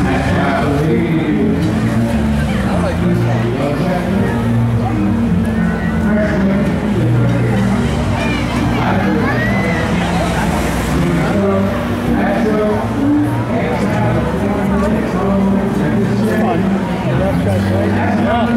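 Live music plays from a stage nearby, loud and steady.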